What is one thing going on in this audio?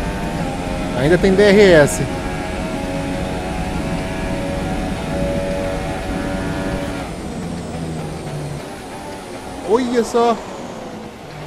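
A racing car engine blips sharply in quick bursts as gears change down.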